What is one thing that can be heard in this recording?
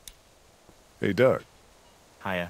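A man speaks briefly and calmly at close range.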